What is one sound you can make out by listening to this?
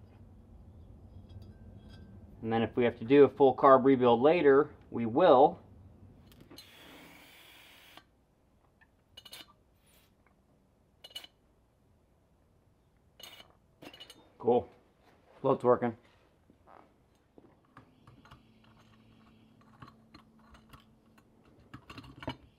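Small metal parts clink and tap together as they are handled.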